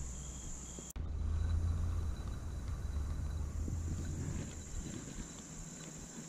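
Shallow stream water trickles softly outdoors.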